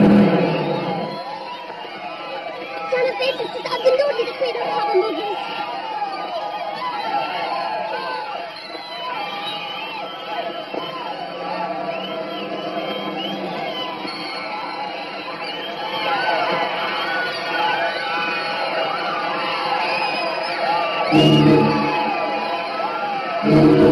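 A crowd cheers and screams excitedly.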